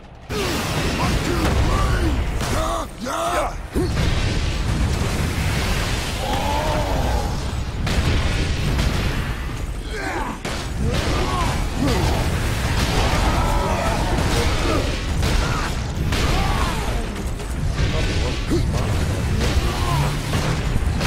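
Creatures growl and roar.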